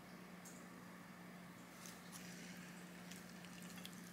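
A pancake slides off a pan onto a plate.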